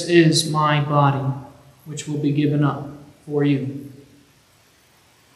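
A young man speaks at a microphone in an echoing hall.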